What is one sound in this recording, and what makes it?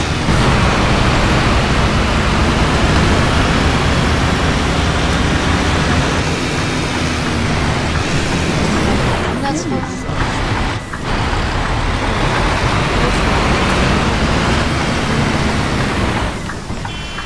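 A bus engine rumbles loudly as the bus drives.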